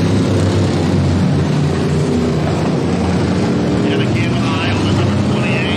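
Race car engines roar loudly around a dirt track.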